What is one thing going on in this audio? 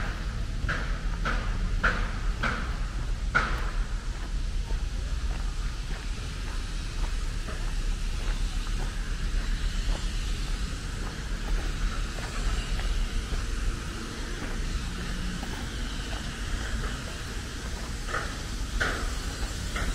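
Wind blows steadily through trees outdoors.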